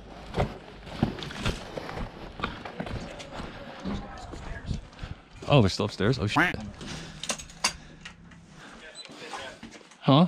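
Footsteps crunch on gravel and debris.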